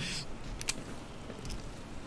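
A revolver is reloaded with metallic clicks.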